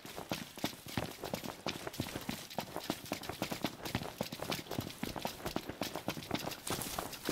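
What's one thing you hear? Several pairs of footsteps run quickly over a dirt path.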